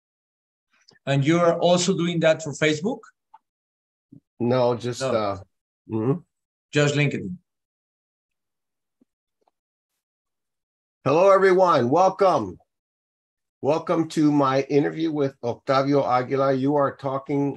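An older man talks calmly over an online call, in short bursts with pauses.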